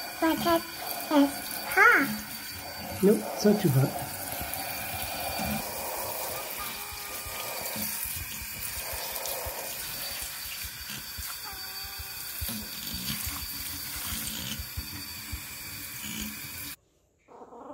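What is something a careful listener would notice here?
Water splashes and runs steadily.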